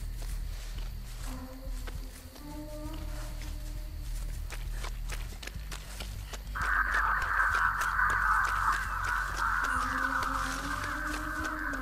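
Footsteps run quickly over rough ground.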